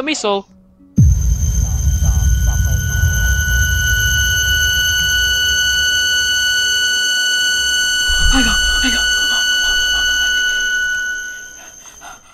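A steady high ringing tone sounds.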